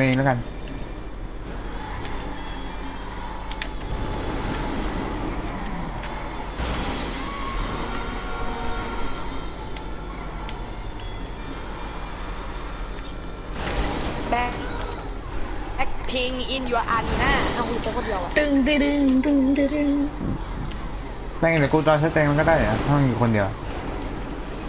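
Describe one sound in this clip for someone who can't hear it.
A car engine roars as a vehicle speeds along.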